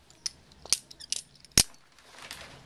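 A small handheld object clicks a few times.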